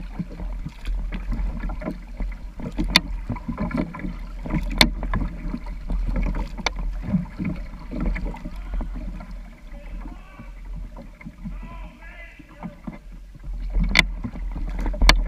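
Water splashes and laps softly against a kayak's hull.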